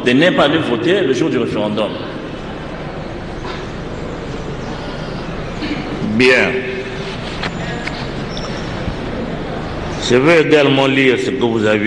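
A man speaks into a microphone in a calm, measured voice.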